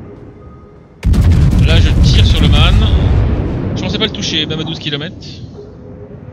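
Heavy naval guns fire a loud, booming salvo.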